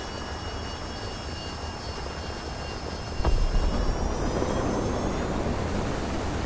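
A jet engine whines high and rises in pitch.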